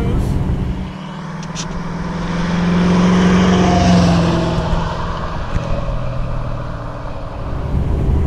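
A car engine roars as it drives past and fades into the distance.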